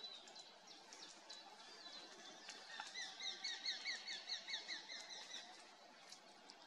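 A bird chirps repeatedly nearby.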